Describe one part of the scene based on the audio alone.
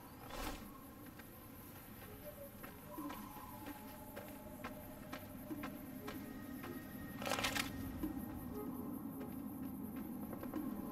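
Footsteps crunch slowly on gravel.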